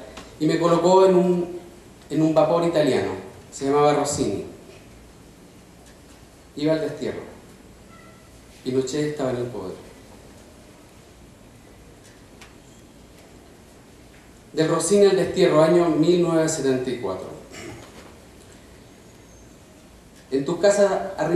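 A middle-aged man speaks calmly into a microphone, in bursts with long pauses.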